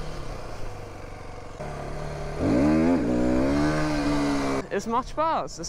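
A motorcycle engine hums and revs up while riding.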